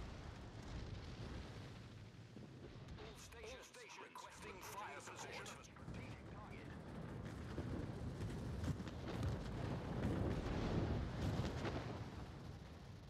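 Shells explode in the water around a warship with deep booming blasts.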